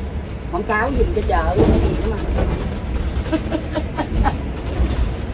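A woman speaks cheerfully close to a phone microphone.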